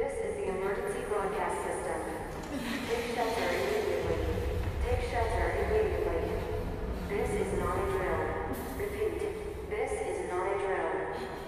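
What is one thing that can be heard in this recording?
A man's voice announces urgently through a radio loudspeaker.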